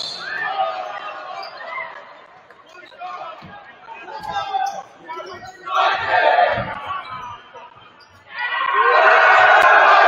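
Young women chatter and call out in a large echoing gym.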